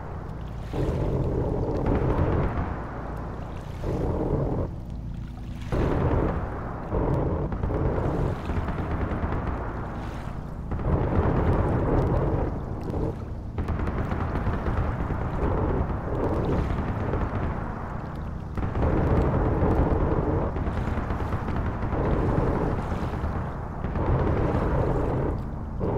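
Shells burst with dull, distant booms.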